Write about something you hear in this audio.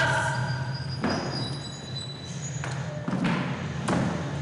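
A metal chair knocks and scrapes on a wooden floor.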